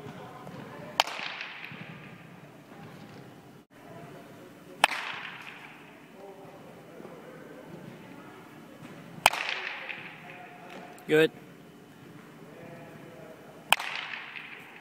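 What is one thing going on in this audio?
A baseball bat sharply cracks against a ball, echoing around a large hall.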